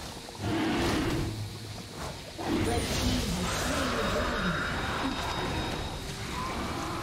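Spell effects and blows clash in a video game battle.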